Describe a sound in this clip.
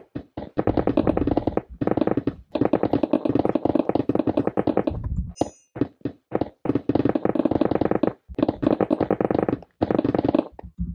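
A pickaxe rapidly chips and breaks stone blocks.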